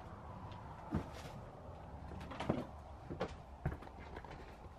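Footsteps crunch over scattered debris on a floor.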